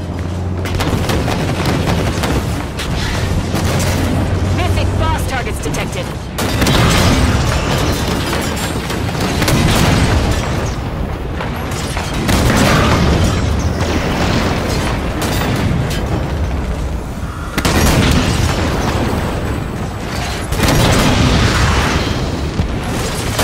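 Gunfire crackles and booms in rapid bursts.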